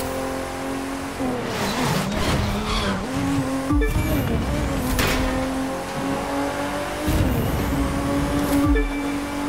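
A racing car engine roars and revs, its pitch rising and dropping with gear shifts.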